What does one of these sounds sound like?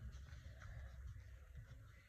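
A hand rubs paper flat against a page.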